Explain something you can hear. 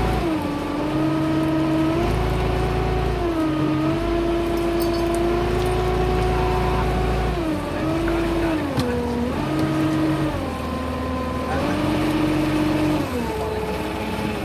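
A motorized winch hums steadily, its pitch dropping and rising as the load changes.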